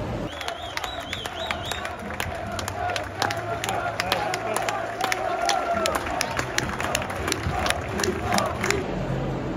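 A large crowd murmurs and chatters in an open stadium.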